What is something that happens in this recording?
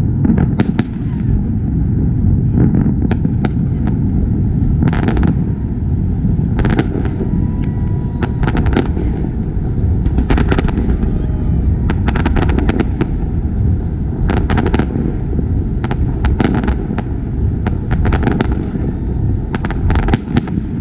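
Fireworks burst with deep, rumbling booms.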